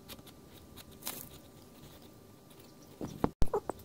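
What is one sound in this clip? A plastic bag crinkles as it is pressed onto paper.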